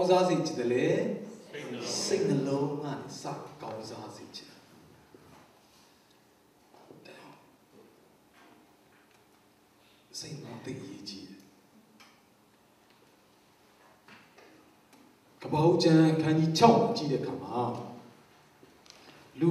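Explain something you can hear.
A middle-aged man speaks into a microphone with animation, heard through a loudspeaker in an echoing room, pausing now and then.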